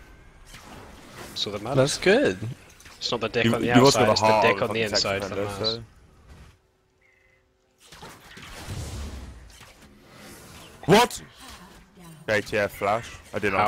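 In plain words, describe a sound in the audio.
Game spell effects burst and clash.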